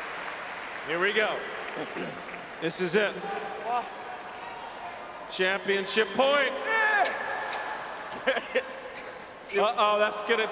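Tennis balls are struck with rackets in a quick rally.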